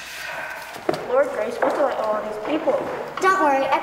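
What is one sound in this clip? A young girl speaks clearly in a hall.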